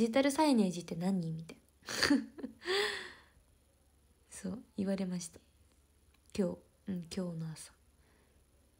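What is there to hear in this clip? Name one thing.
A young woman talks animatedly, close to the microphone.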